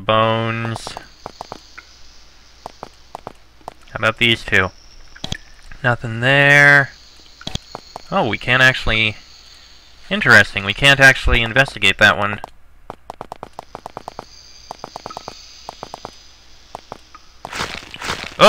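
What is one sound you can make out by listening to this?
Soft game clicks tick in quick runs.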